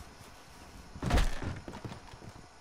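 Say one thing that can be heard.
A wooden door bangs loudly.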